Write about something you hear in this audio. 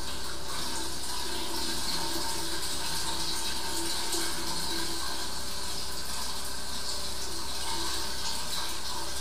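Water rushes steadily through a hose.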